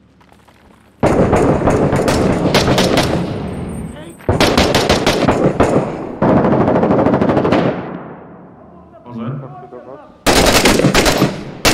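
A rifle fires long, loud, rapid bursts close by.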